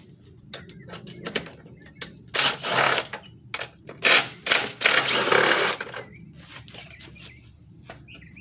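Metal parts clink and rattle.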